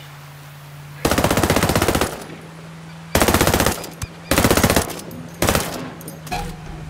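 A rifle fires loud rapid bursts.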